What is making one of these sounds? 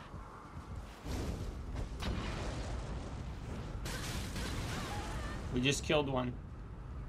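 A fiery explosion booms and roars.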